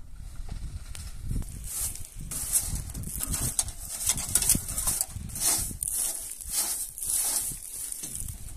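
A broom sweeps dust briskly across a metal truck bed.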